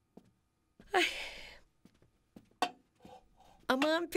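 Dishes clink on a tray as it is set down.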